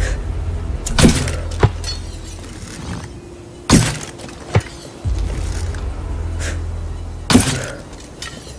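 A crossbow fires with sharp snaps.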